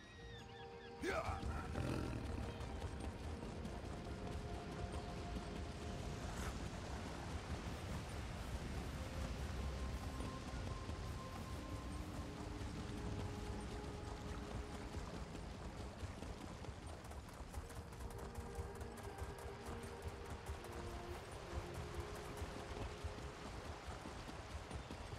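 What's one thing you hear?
A horse gallops with quick, steady hoofbeats.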